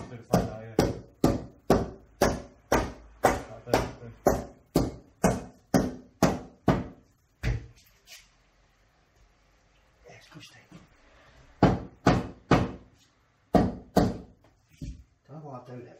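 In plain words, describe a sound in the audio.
A rubber mallet taps repeatedly on stone.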